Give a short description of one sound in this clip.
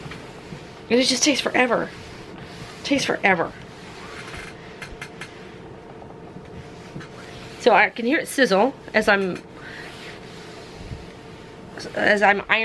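An iron slides softly back and forth over fabric.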